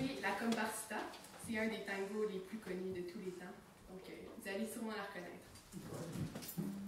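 A young woman speaks calmly into a microphone in a room.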